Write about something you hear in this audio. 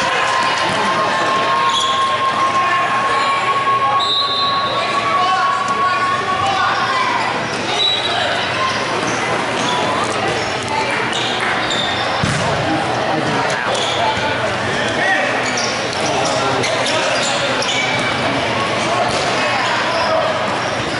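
Young players shout to each other across a large echoing hall.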